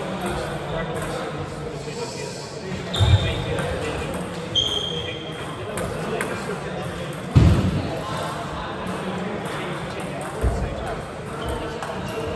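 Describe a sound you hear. A table tennis ball clicks back and forth on paddles and the table.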